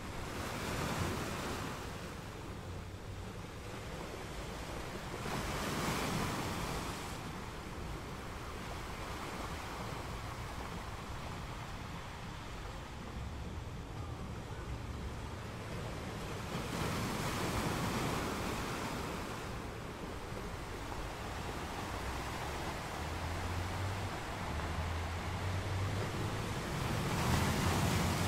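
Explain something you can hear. Ocean waves crash and break onto rocks in surging bursts.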